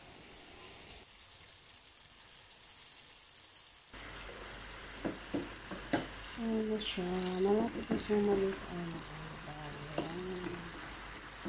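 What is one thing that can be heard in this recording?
Balls of dough sizzle and bubble as they deep-fry in hot oil.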